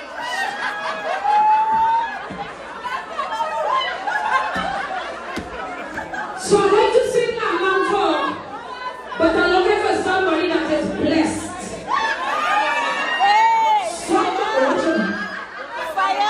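A woman sings loudly through a loudspeaker.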